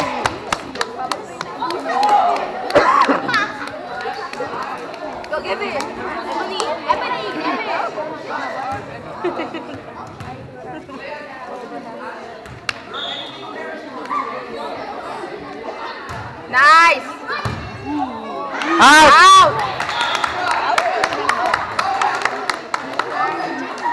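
Spectators chatter and talk throughout in a large echoing gym.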